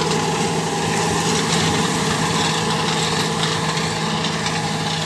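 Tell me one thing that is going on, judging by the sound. A tractor engine rumbles steadily up close.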